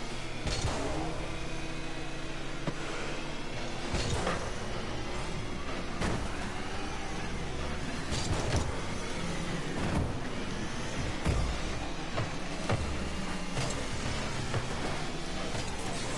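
A car engine hums and revs steadily in a video game.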